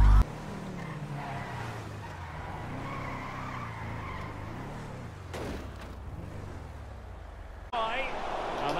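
A truck engine revs and roars.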